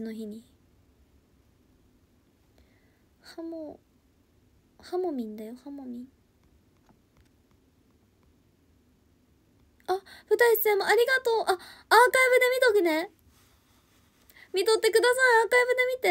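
A young woman speaks softly and casually into a nearby microphone, with pauses.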